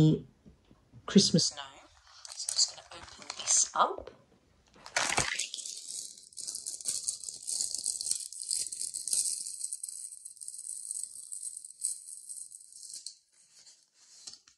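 A plastic packet crinkles as hands handle it.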